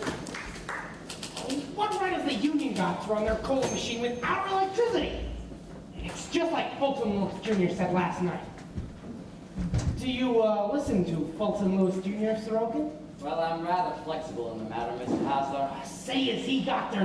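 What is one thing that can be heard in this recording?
A man speaks loudly and with animation in an echoing hall.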